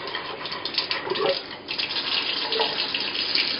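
Liquid pours and splashes into a container.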